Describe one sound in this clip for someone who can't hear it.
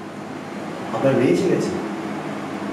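A young man speaks nearby.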